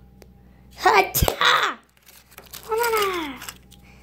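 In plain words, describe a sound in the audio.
A plastic toy egg snaps open.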